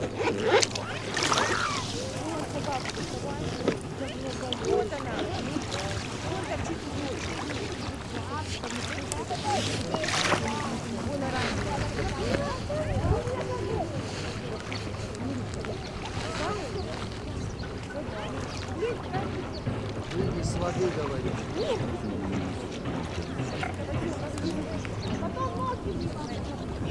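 Gulls and swans call noisily all around.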